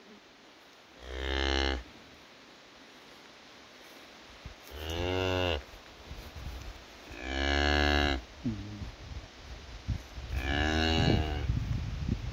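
A cow moos close by several times.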